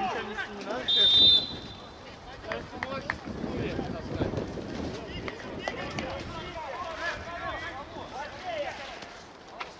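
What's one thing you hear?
Players call out to each other across an open outdoor field.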